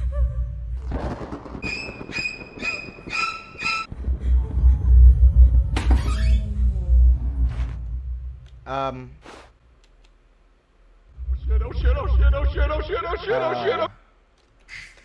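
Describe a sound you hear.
Low, dark rumbling noises play from a game.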